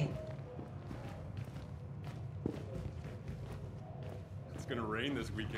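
Footsteps tap steadily along a hard floor in an echoing corridor.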